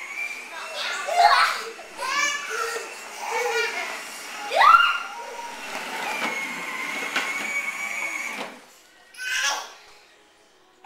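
A small girl squeals excitedly close by.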